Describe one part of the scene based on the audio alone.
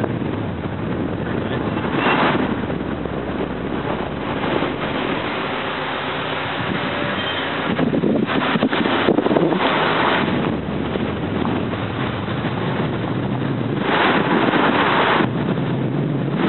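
A vehicle engine hums as it drives slowly along a road.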